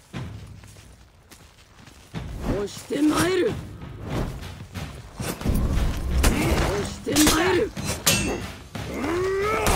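Steel weapons clash and strike in a fight.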